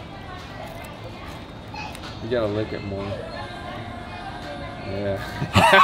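A man crunches a crispy snack.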